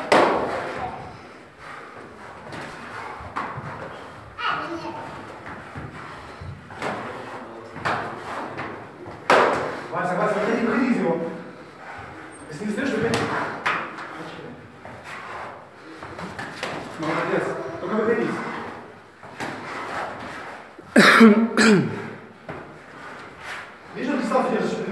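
A man speaks loudly nearby, in a room with some echo.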